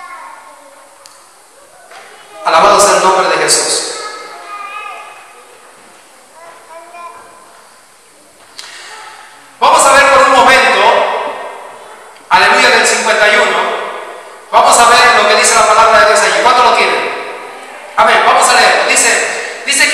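A man speaks with passion into a microphone, his voice loud and echoing through a hall.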